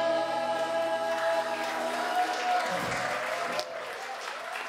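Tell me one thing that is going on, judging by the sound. A choir sings a held chord in a large echoing hall.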